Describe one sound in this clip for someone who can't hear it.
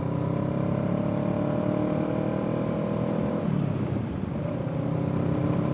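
Wind rushes past a motorcycle rider.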